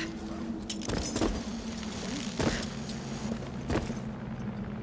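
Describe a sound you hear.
Boots thud and scrape against rock.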